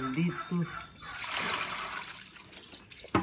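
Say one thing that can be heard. Water splashes as a hand stirs in a basin.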